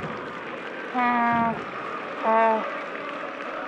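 A referee's whistle blows sharply twice.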